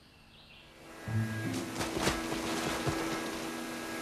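A chainsaw buzzes as it cuts into wood.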